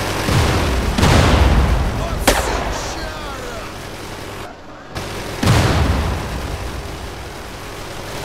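A bus engine rumbles and revs.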